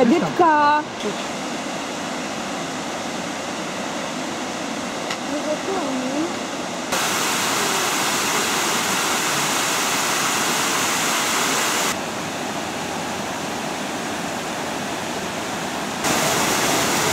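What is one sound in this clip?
A waterfall pours into a lake.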